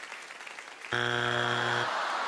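A loud buzzer blares.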